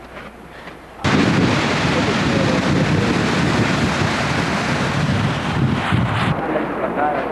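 Water roars as it pours down a spillway.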